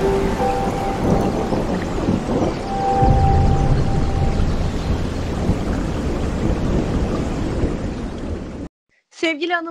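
Strong wind roars through a storm.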